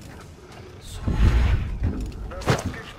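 A deep magical whoosh rushes past.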